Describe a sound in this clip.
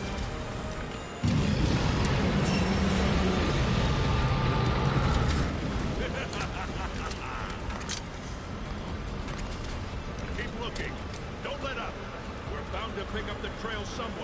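Sparks crackle and fizz.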